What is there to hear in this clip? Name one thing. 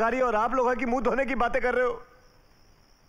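A man speaks loudly and with animation nearby.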